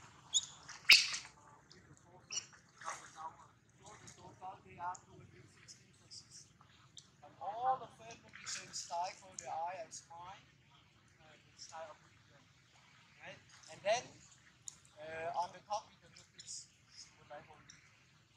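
Monkeys splash about in water.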